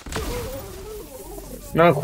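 Electricity crackles and buzzes sharply.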